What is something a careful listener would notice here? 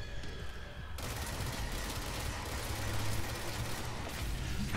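A pistol fires in rapid shots.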